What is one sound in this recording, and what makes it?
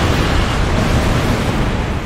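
Flames whoosh in a sweeping blast.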